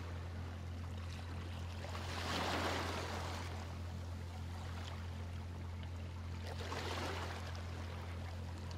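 Small waves wash gently onto a shore in swells that rise and fall.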